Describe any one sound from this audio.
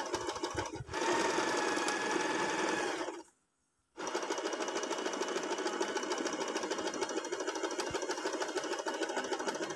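A sewing machine whirs and stitches rapidly, with a short pause partway through.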